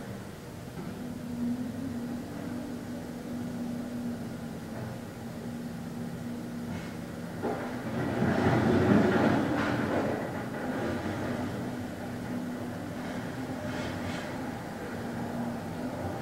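A man hums a low, steady note close by.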